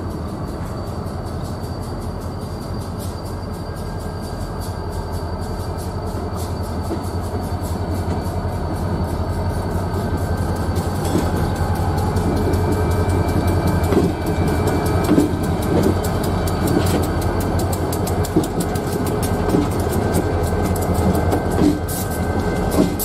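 Diesel locomotives rumble closer and pass by loudly.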